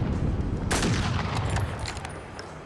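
A rifle shot rings out loudly with a trailing echo.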